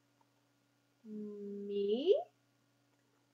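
A young woman reads aloud close by, in a lively, rising voice.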